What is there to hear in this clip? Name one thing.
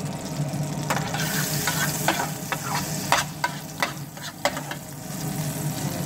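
Butter sizzles softly in a hot pan.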